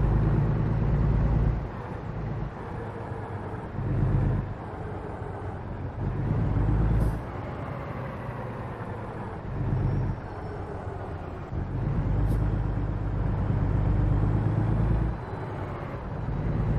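A truck engine rumbles deeply, swelling and easing off in repeated surges.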